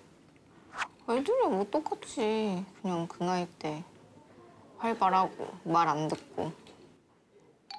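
A young woman answers calmly.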